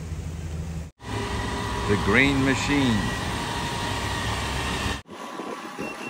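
A garbage truck engine rumbles nearby.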